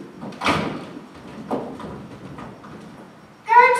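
A door shuts with a thud.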